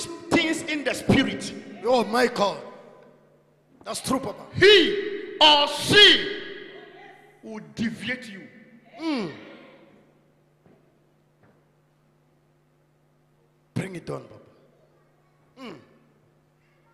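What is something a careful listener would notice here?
A man preaches loudly and with animation into a microphone.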